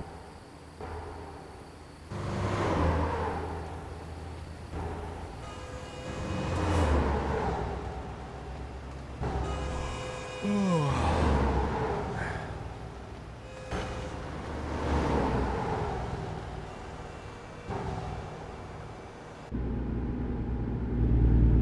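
A heavy truck engine drones steadily.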